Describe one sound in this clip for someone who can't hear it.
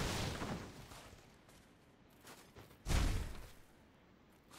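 A heavy sword swings and strikes with loud thuds.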